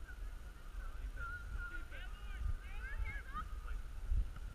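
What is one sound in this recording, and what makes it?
Young players shout faintly in the distance across an open field.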